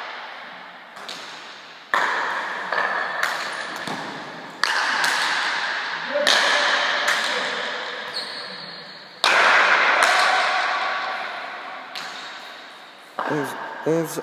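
A hard ball smacks loudly against a wall and echoes through a large hall.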